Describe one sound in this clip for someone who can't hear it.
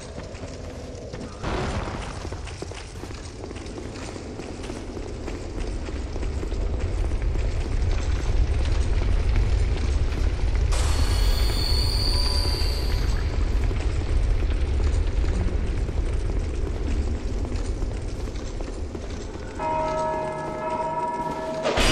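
Armoured footsteps clank on a stone floor.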